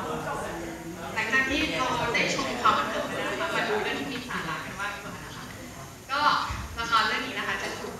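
A young woman speaks with animation through a microphone over a loudspeaker.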